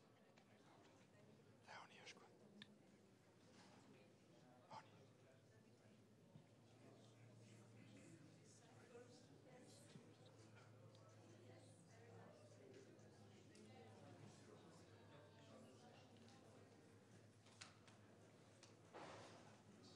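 A man and a woman talk quietly close by.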